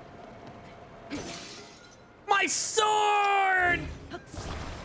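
A sword shatters with a bright, glassy crash.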